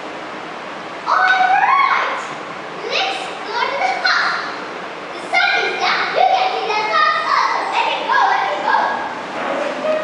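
Two children speak lines to each other, heard from an audience in a hall.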